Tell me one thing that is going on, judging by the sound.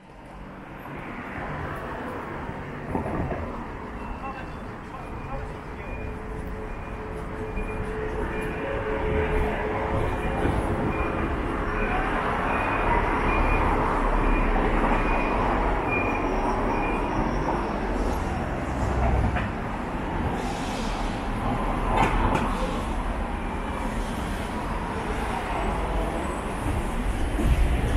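Traffic hums steadily along a city street outdoors.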